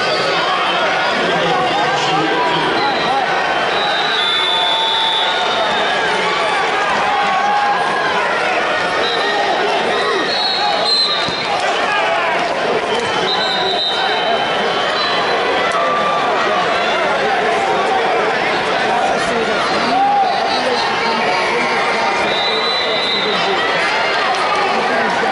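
A large crowd murmurs and chatters throughout in a big echoing arena.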